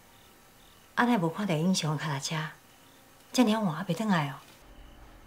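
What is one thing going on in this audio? A middle-aged woman speaks close by with alarm and animation.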